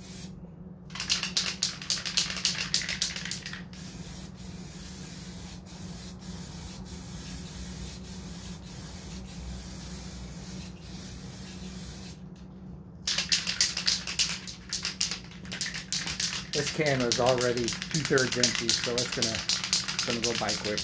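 A man shakes a spray can, its ball rattling rapidly.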